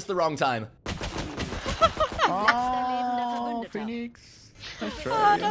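A young woman talks and laughs into a microphone.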